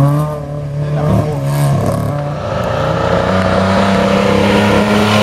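A racing car engine roars loudly as it speeds past.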